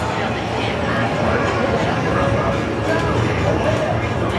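A prize wheel spins with rapid clicking.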